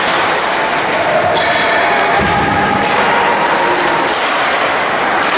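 Young players call out to one another in a large echoing arena.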